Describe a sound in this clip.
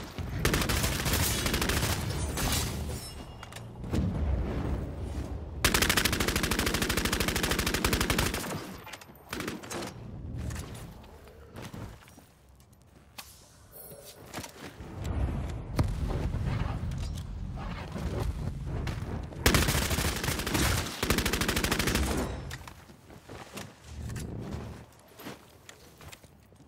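Large flames roar.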